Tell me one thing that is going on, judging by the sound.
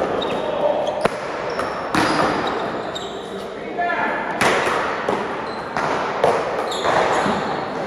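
A ball smacks against paddles and a wall, echoing through a large hall.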